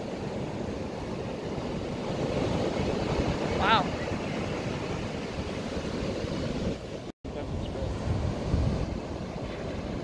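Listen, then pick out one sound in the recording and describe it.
Waves break and wash up onto the shore.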